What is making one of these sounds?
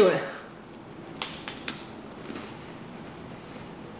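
A young woman chews and crunches on food.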